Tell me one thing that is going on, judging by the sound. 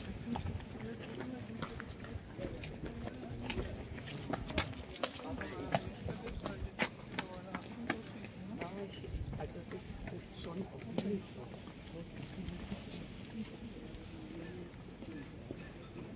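Footsteps tap on cobblestones nearby.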